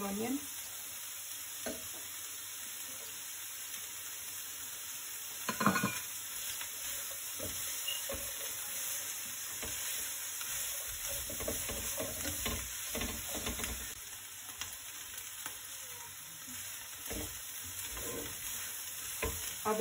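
Vegetables sizzle in a hot pan.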